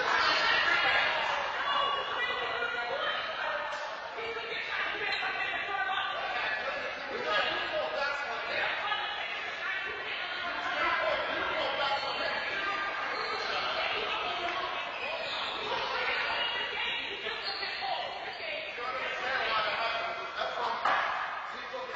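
A woman talks with animation in an echoing hall.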